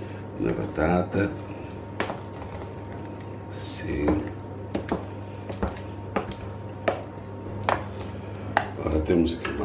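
A wooden spoon knocks and scrapes against a metal pot while mashing soft food.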